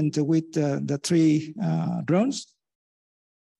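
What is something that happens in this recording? A man lectures calmly, heard through a microphone over an online call.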